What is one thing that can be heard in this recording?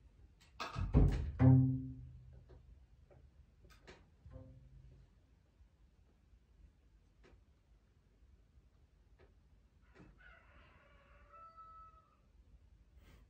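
A double bass is bowed, playing low sustained notes.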